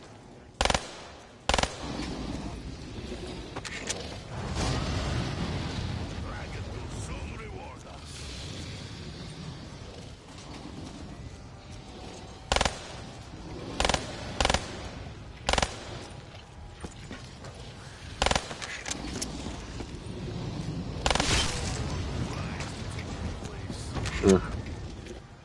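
Gunshots fire in sharp single bursts.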